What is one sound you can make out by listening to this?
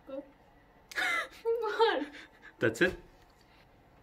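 A young woman laughs softly.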